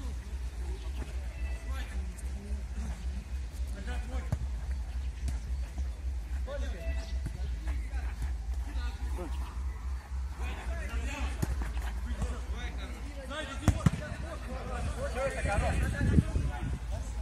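A football is kicked with a dull thump outdoors.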